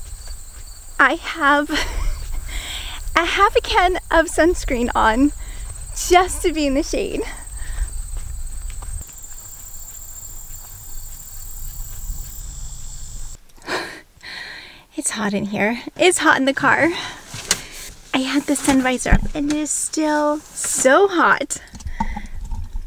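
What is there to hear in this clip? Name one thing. A young woman talks with animation close by.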